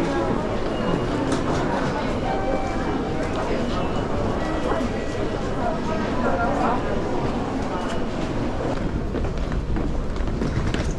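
A crowd murmurs and chatters in a busy echoing hall.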